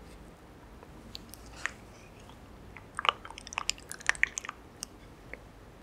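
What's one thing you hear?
A spoon scrapes and clicks against soft chewy pearls.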